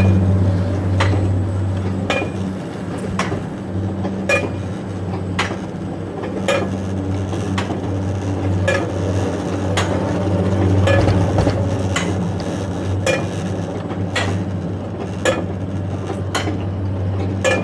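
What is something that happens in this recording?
A coaster cart rumbles steadily up a track.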